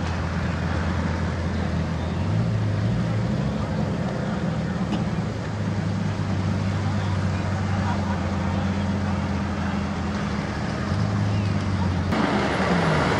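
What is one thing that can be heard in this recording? A truck engine idles and revs nearby.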